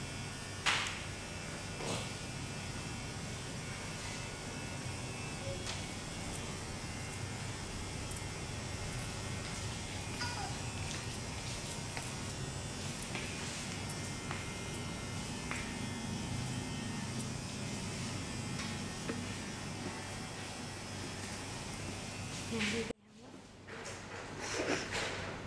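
Hands rub and press softly on a man's scalp.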